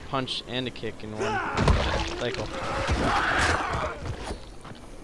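A blade slashes and strikes flesh with heavy thuds.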